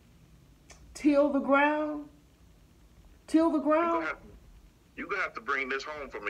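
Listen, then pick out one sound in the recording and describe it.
A phone's small speaker plays short bursts of sound.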